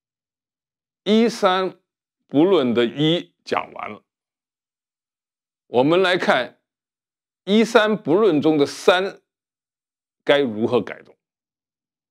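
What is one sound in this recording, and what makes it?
An elderly man speaks calmly and close to a microphone, in short phrases with pauses.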